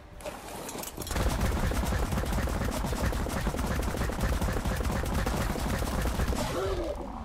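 A large creature's feet thump rapidly on sand as it runs.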